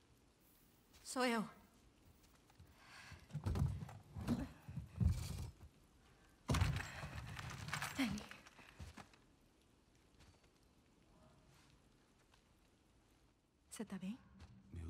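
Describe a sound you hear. A young woman speaks softly and emotionally.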